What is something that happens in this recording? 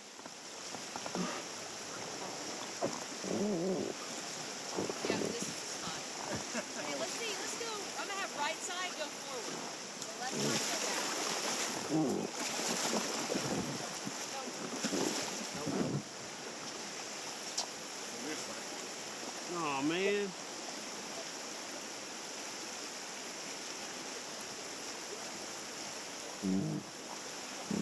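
Young men and women on a raft talk and call out with animation, close by.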